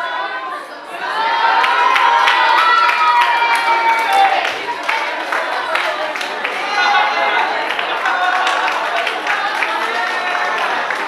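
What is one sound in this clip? Several people talk and cheer loudly in an echoing room.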